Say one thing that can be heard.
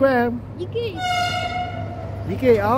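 A train horn sounds briefly.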